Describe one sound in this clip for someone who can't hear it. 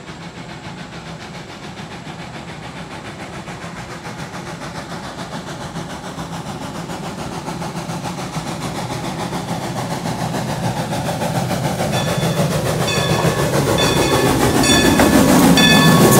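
A steam locomotive chugs steadily, growing louder as it approaches.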